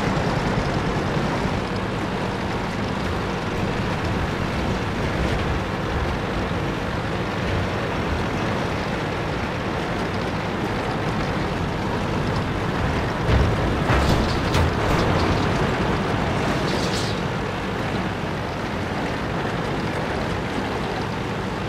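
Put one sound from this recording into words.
Tank tracks clatter and squeak.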